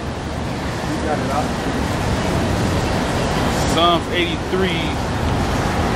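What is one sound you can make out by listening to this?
A middle-aged man reads aloud from close by, outdoors.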